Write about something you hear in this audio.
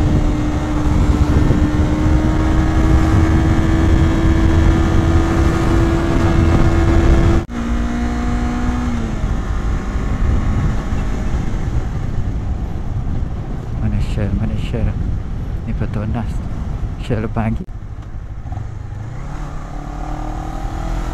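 A motorcycle engine roars at high revs, dropping and rising in pitch with gear changes.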